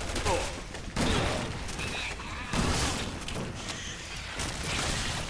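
Gunshots bang in quick bursts.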